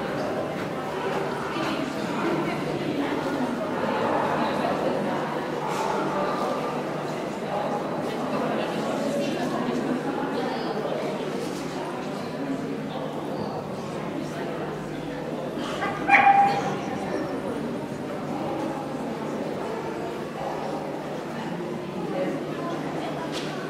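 A woman talks encouragingly to a dog in an echoing indoor hall.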